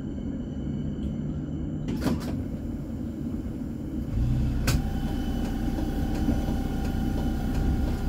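A tram rumbles past close by on its rails.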